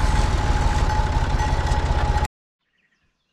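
An engine rumbles steadily close by.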